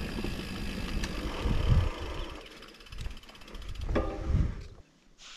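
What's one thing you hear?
Wind rumbles against the rider outdoors.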